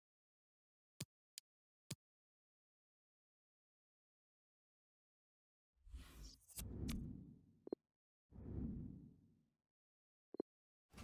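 Short menu clicks and soft tones sound now and then.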